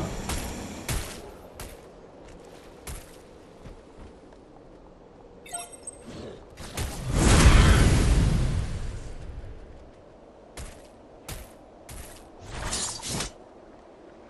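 A weapon fires in short bursts.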